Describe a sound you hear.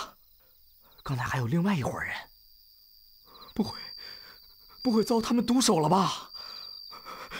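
A young man speaks in a frightened voice.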